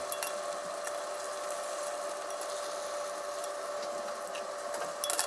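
Egg sizzles in a hot pan.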